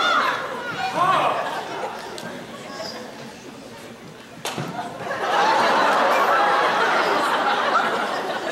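Young men and women shout and cheer loudly in an echoing hall.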